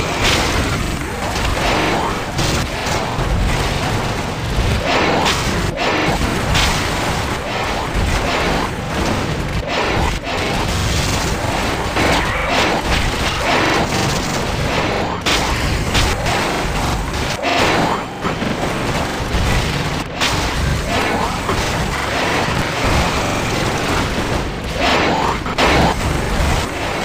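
Game gunfire and explosions crackle and boom rapidly.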